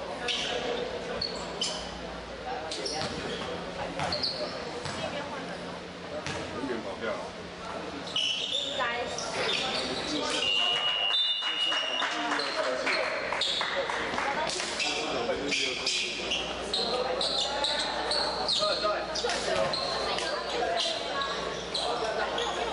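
Players and onlookers chatter in an echoing hall.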